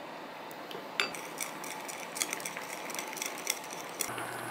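A wooden spoon clinks and scrapes against a glass bowl while stirring.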